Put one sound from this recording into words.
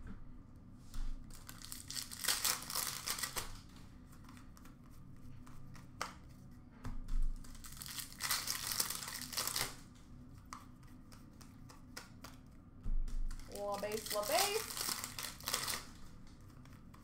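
Trading cards rustle and shuffle in a hand.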